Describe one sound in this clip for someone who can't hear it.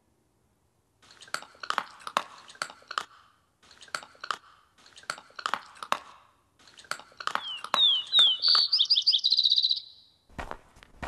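A wolf tears and chews at meat.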